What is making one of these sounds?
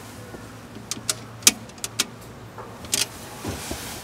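A man presses buttons on a payphone keypad with short clicks.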